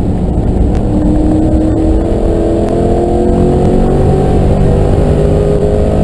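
A car engine roars loudly from inside the cabin, its pitch slowly rising as the car speeds up.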